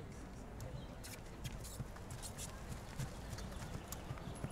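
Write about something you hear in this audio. A horse's hooves thud softly on grass as it trots.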